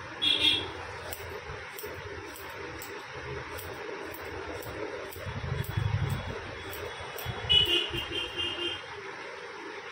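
Scissors snip through hair with quick, repeated clicks.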